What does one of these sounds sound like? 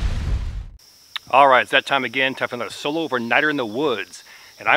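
A man speaks with animation, close by, outdoors.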